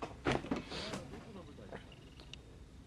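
A young man speaks quietly close to a microphone.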